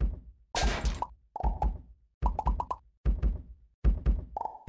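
Coins chime in quick bright bursts as they are collected.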